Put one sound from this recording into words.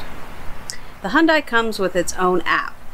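A middle-aged woman speaks calmly outdoors, close by.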